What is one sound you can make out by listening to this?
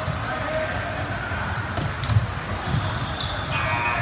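A volleyball is served with a hard slap.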